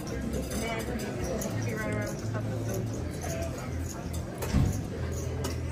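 Casino chips clack together as a stack is picked up and moved.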